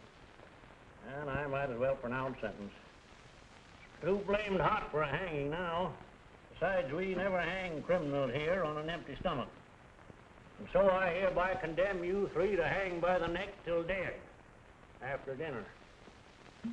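An older man speaks forcefully and sternly, close by.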